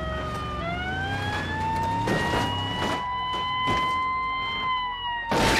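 A car engine hums steadily, rising in pitch and then slowly falling.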